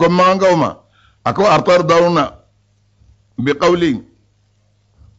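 An elderly man speaks slowly and calmly into a microphone, pausing between phrases.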